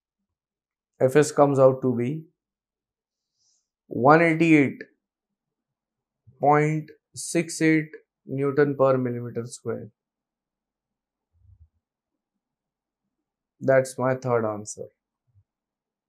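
A man explains calmly into a close microphone, in short bursts with pauses.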